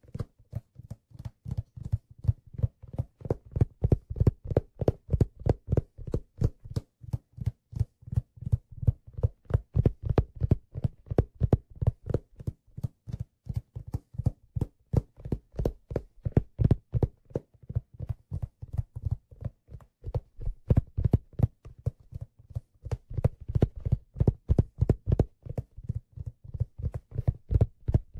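A drum kit is played close by in a fast, steady beat.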